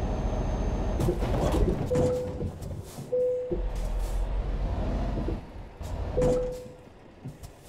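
A truck crashes and scrapes with loud bangs and thuds.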